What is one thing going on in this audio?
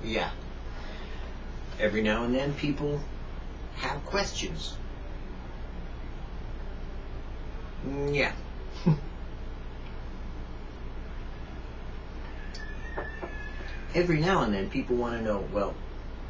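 An elderly man talks calmly close by, in short bursts with pauses.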